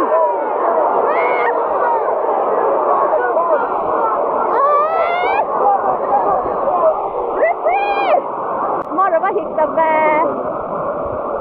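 Nearby fans shout and cheer close by.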